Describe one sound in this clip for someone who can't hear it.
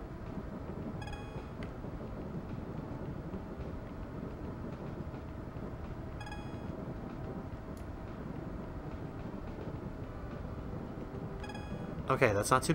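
A short electronic chime sounds several times.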